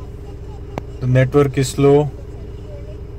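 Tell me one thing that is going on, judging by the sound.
A car's dashboard unit sounds a short electronic chime.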